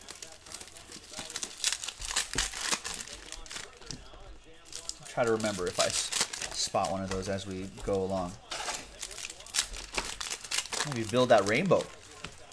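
Plastic wrappers crinkle and rustle as packs are torn open.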